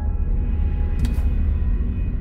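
A safe's combination dial clicks.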